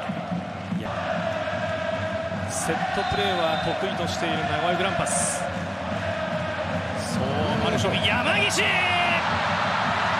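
Stadium fans chant and sing loudly.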